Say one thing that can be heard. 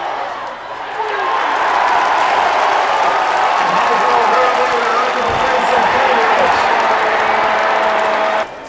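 A large crowd cheers and shouts loudly, swelling suddenly.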